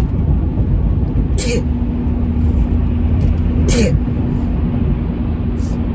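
A car engine hums with a low road rumble.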